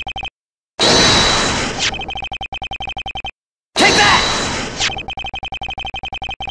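Rapid electronic blips chatter in quick succession.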